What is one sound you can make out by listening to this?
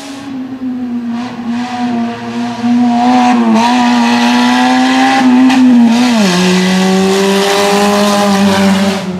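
A rally car engine roars at high revs, growing louder as it approaches and passes close by.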